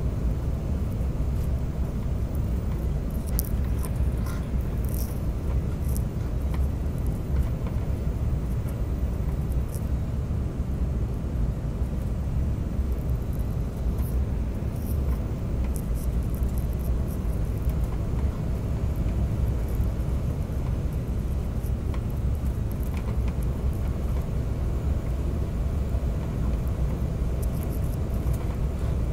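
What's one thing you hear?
A jet airliner's engines roar in a steady low rumble inside the cabin.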